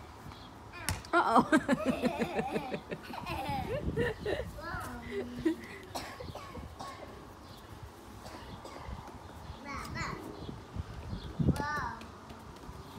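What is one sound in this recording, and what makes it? A young child squeals and shouts excitedly nearby.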